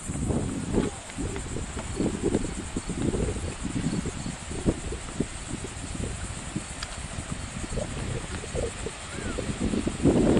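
Footsteps thud on a wooden boardwalk.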